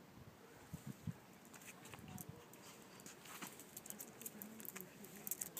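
A small dog's claws tap and scratch on paving stones.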